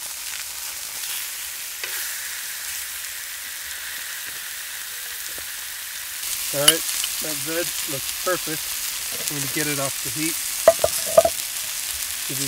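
Meat sizzles and hisses on a hot griddle.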